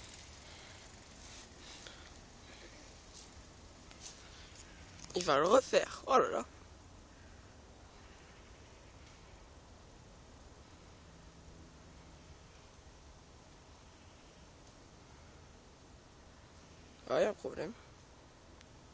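A bicycle rolls over a dirt trail in the distance.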